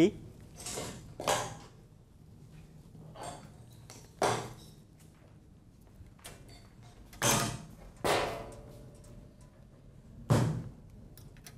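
Objects knock and clatter as they are handled.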